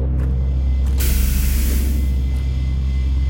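A heavy sliding door opens with a loud hiss.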